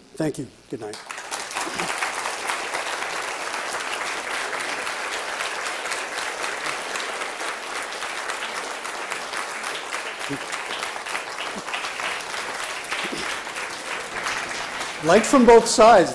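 An audience claps and applauds.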